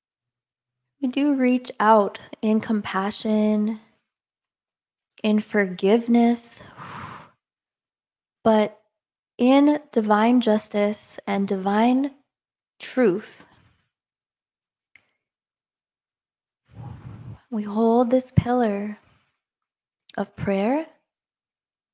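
A young woman speaks calmly and close into a microphone, with pauses.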